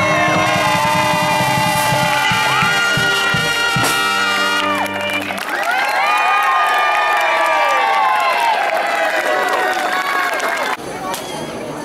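A brass band plays a lively tune loudly outdoors.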